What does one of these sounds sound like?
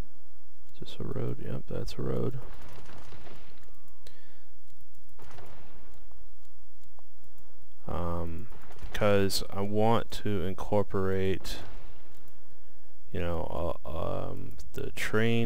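Short clicks sound as menu options are picked.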